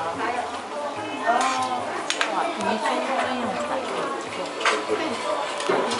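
Utensils clink against pots and dishes.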